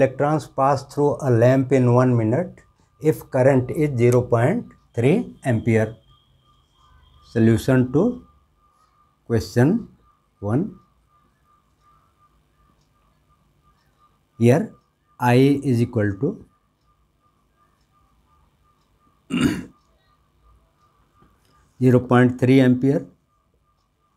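A middle-aged man speaks calmly and clearly in short bursts, close by.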